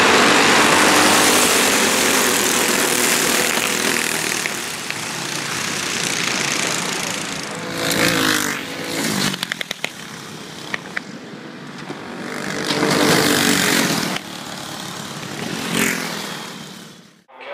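Kart engines buzz loudly as karts race past.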